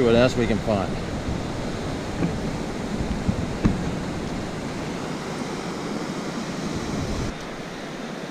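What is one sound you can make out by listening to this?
Waves wash gently onto a shore, outdoors.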